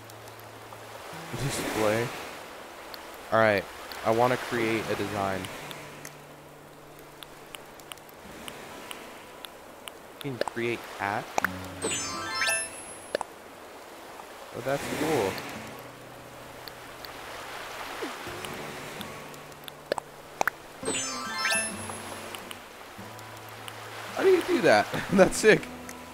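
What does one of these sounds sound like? Short chiming blips sound as menu choices change.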